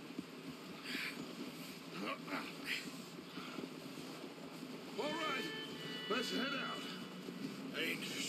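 Horses' hooves thud steadily on snow.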